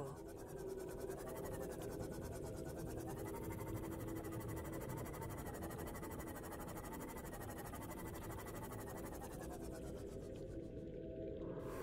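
A small submarine hums steadily as it glides underwater.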